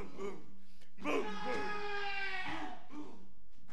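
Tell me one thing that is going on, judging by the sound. A man cries out loudly in a long, strained shout.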